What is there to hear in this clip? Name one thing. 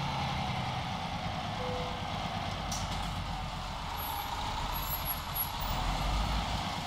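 A truck engine idles with a low, steady rumble.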